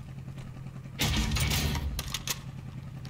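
A gun rattles and clacks as it is picked up.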